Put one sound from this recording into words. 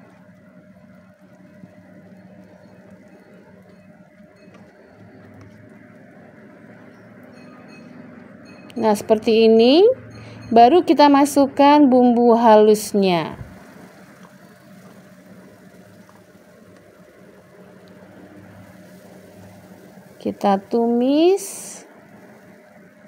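Shallots sizzle softly in hot oil.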